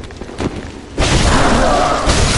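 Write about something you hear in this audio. A blade swings and whooshes through the air.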